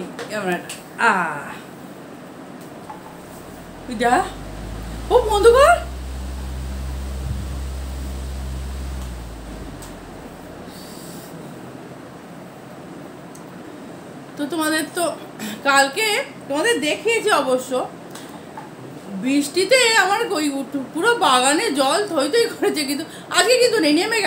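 A woman talks close by, with animation.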